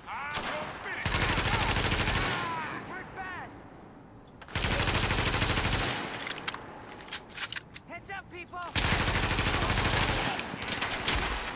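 A rifle fires long, rapid bursts of gunshots.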